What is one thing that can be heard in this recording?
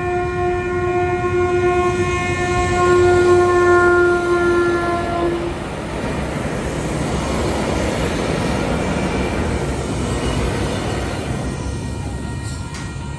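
A train rumbles past close by and fades away.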